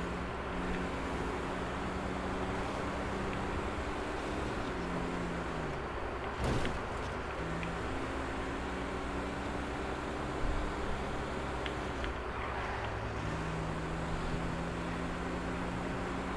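A car engine hums steadily, rising and falling in pitch as the car speeds up and slows.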